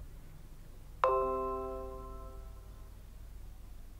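A computer notification chime sounds once and rings out.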